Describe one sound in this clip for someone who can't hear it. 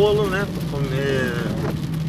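A windshield wiper sweeps across the glass.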